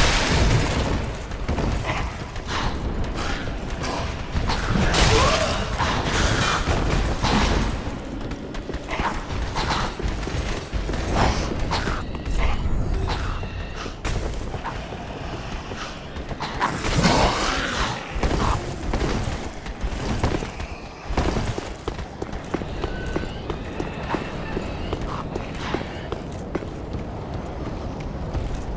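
Armoured footsteps thud and clatter on wood and stone.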